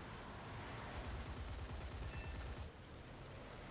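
Cannons fire in a rapid burst.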